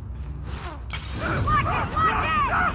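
Flames burst up with a whoosh and crackle.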